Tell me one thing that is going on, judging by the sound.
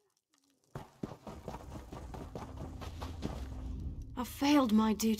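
Footsteps run over soft ground.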